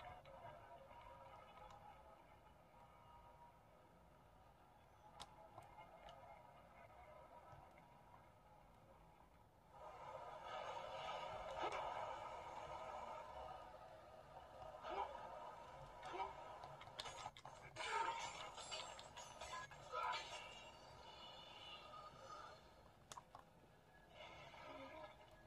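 Video game sound effects play through a tablet's small speaker.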